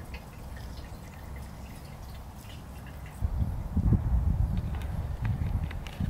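Liquid gurgles as it is poured from a bottle into a tank.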